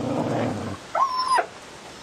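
A dog lets out a sudden high yelp.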